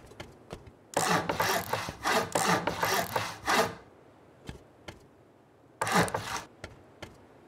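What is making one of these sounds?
Heavy stone blocks crunch and thud into place with a rattling burst.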